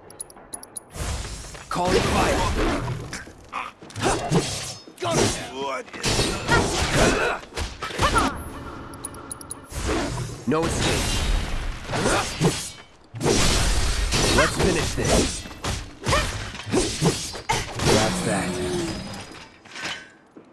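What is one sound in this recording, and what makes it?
Heavy blades clang and slash in a fast fight.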